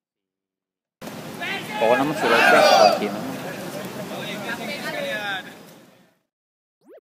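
A group of young men shout and cheer together outdoors.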